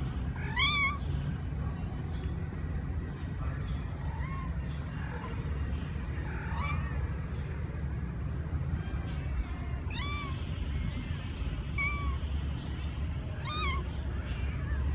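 Kittens meow with high-pitched calls.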